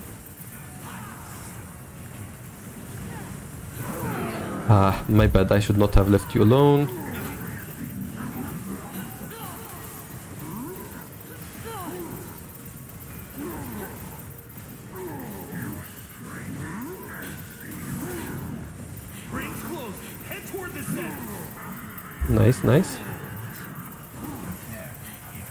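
Spell effects whoosh and crackle in a game battle.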